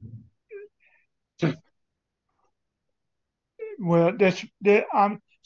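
An elderly man speaks calmly and close to a microphone, with pauses.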